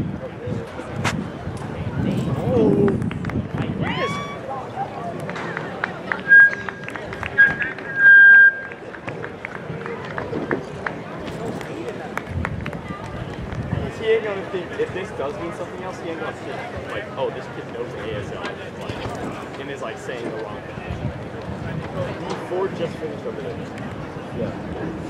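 A crowd of spectators murmurs and chatters outdoors in the distance.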